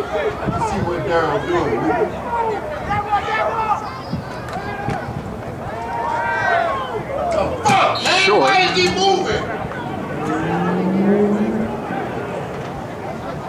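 Spectators shout and cheer outdoors at a distance.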